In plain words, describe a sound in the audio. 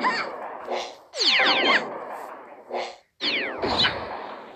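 A laser beam crackles and buzzes.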